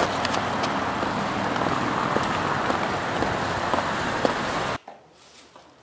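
Wind rushes loudly outdoors.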